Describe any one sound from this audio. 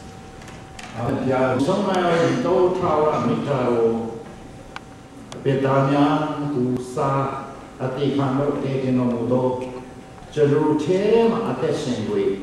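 Young women sing into microphones through loudspeakers.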